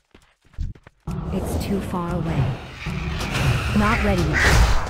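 Weapon strikes and spell effects clash in a fight.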